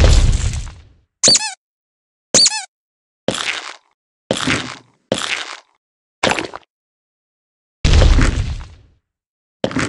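Bugs squish and crunch under stomping feet in short bursts.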